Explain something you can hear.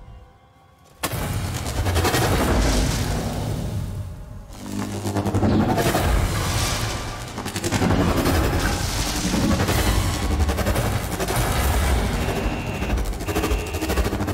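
Electricity crackles and roars loudly.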